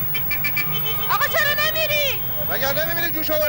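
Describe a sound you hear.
A young woman shouts angrily nearby.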